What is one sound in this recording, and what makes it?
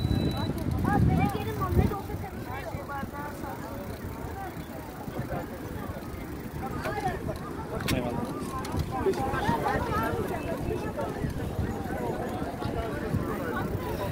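Children and adults chatter in the distance.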